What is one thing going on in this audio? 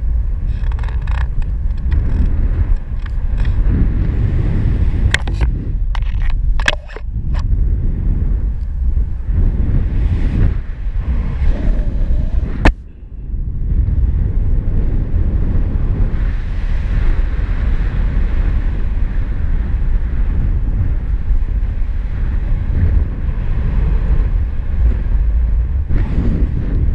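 Strong wind rushes and buffets loudly against the microphone.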